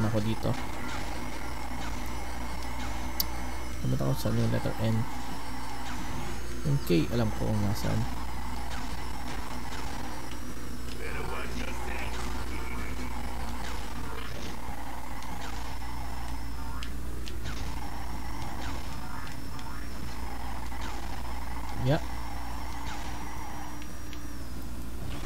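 Kart engines whine and roar steadily.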